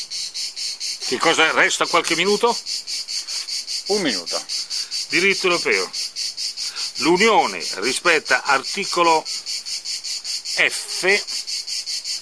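An elderly man speaks calmly and close by, in short phrases.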